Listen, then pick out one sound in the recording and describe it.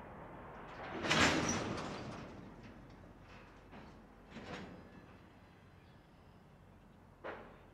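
Freight cars clank and bang on the rails.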